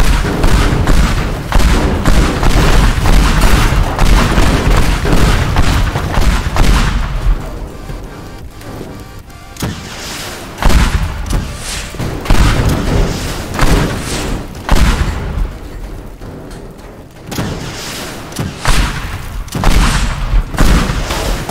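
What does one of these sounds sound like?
Loud explosions boom and rumble one after another.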